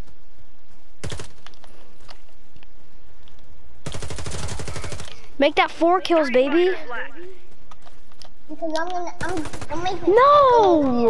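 Rapid gunfire bursts out in quick rattling volleys.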